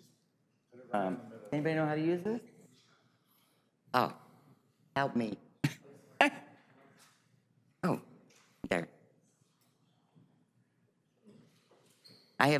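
An elderly woman speaks into a microphone in short bursts, with pauses.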